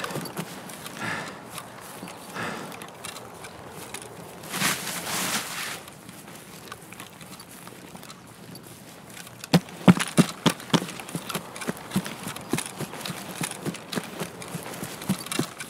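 Tall grass rustles and swishes against someone moving through it.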